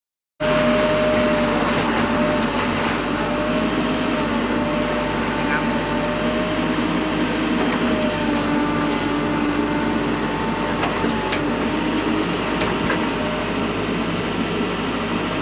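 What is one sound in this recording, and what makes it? A backhoe engine rumbles steadily close by.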